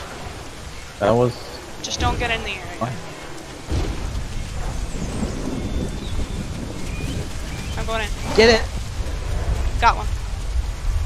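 A small dinosaur gives shrill, chirping cries.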